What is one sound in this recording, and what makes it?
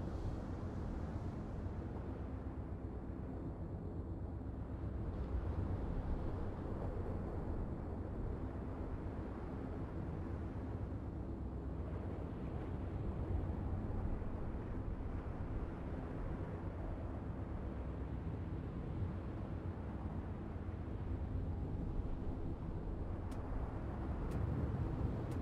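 Waves wash against a ship's hull.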